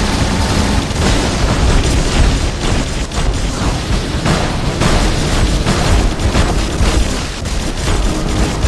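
Explosions boom and crackle close by.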